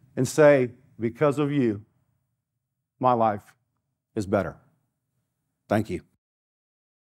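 An older man speaks with emphasis into a microphone.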